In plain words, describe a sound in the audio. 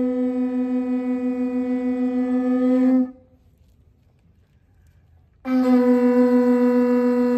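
A conch shell sounds a long, steady, low horn blast, stops, then sounds again.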